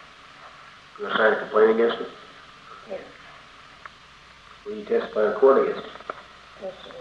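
A man asks questions calmly over an old, hissy recording.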